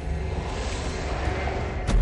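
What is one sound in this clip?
A torch flame crackles and whooshes as it swings.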